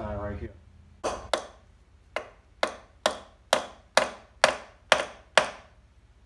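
A hammer strikes a metal tool with sharp, ringing blows at a steady pace.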